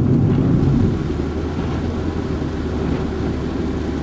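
A windscreen wiper swishes across wet glass.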